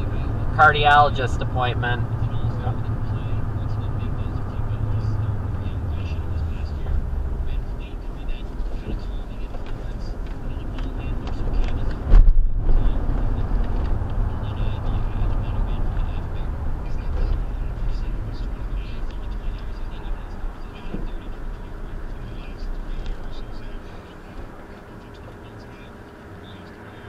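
A car engine hums steadily from inside the car, then quiets as the car slows to a stop.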